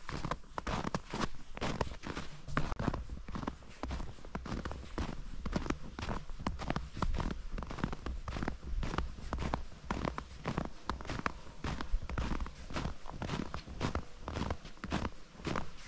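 Footsteps crunch through deep snow at a steady walking pace.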